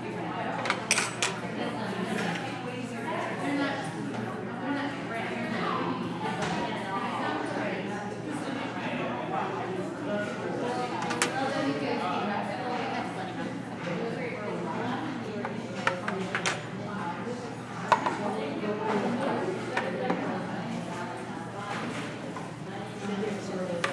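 A crowd of men and women chatter at once in a busy room.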